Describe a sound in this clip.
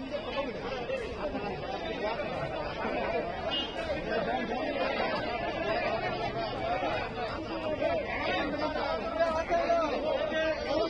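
Several men argue loudly outdoors, talking over one another.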